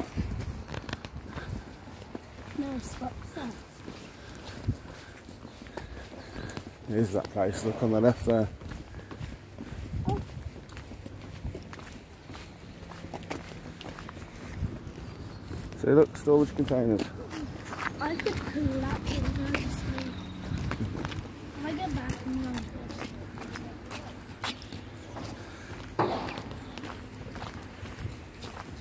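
Footsteps scuff along a wet paved path.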